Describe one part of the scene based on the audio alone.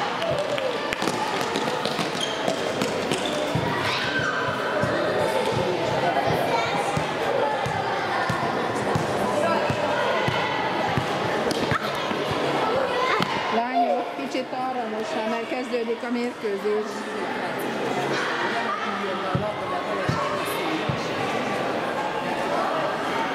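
Young girls chatter and call out in an echoing hall.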